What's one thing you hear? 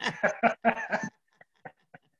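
A man laughs through an online call.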